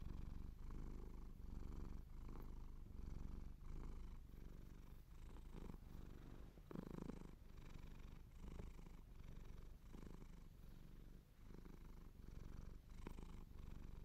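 Hands rub together softly.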